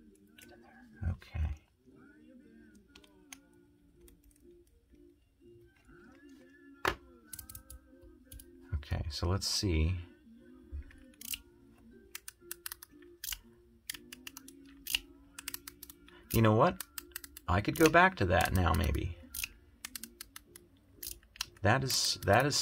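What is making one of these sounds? Small metal parts click and clink against a tool.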